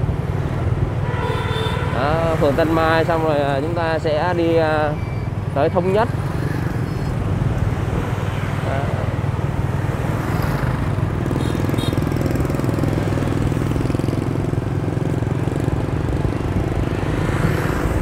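Motorbike engines drone steadily in nearby traffic.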